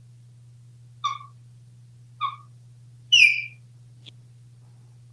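A parrot whistles short high notes.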